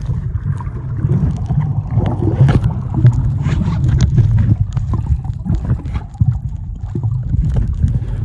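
Water rushes and bubbles in a muffled underwater rumble as a swimmer strokes.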